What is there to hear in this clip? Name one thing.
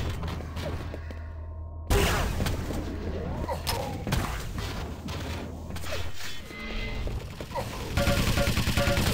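Guns fire in rapid bursts in a game.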